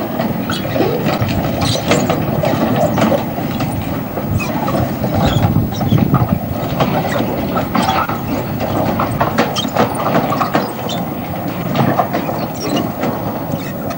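A train of flatcars rumbles and clatters along a railway track outdoors.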